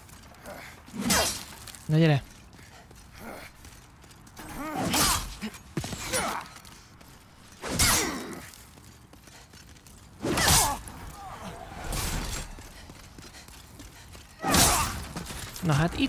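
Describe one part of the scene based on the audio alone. Sword swings whoosh and clang in a game.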